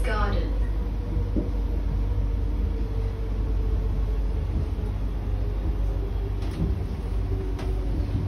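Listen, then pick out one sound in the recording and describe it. A metro train rumbles along at speed, heard from inside the carriage.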